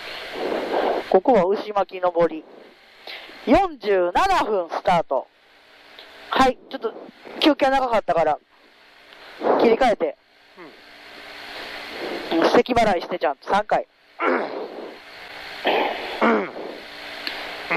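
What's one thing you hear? A man talks calmly inside a car, close by.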